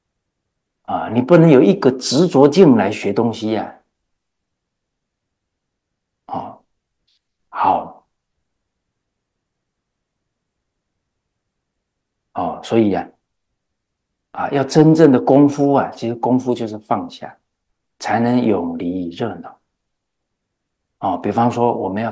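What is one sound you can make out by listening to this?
A middle-aged man speaks calmly and close to a microphone, in bursts with long pauses.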